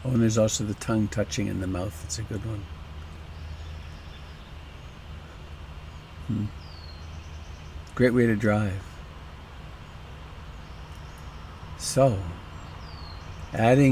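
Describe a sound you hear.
An elderly man speaks calmly and close up, in short bursts with pauses.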